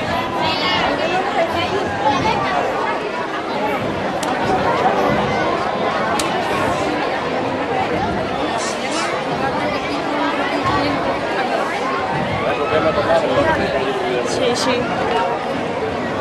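A crowd of men, women and children chatter close by outdoors.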